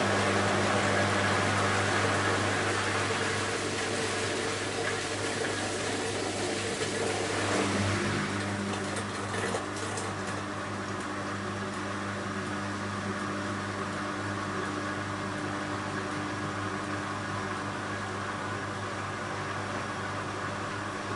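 Water sloshes and splashes inside a washing machine drum.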